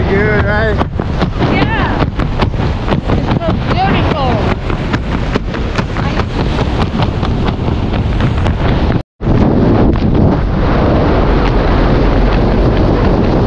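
Strong wind roars and buffets close by.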